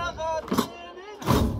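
A group of men chants together.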